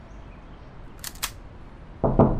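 A pistol slide clicks as it is racked.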